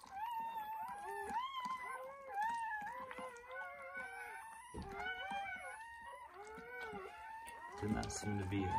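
A dog whimpers and whines softly up close.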